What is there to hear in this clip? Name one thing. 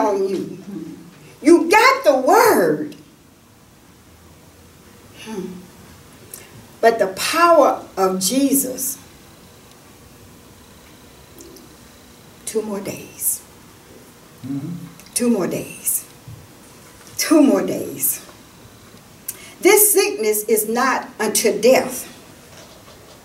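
An elderly woman speaks slowly and clearly, with pauses between phrases.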